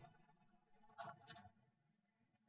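A metal gate clanks shut.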